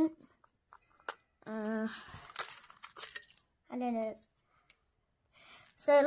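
Plastic toy parts clack as they are pulled apart.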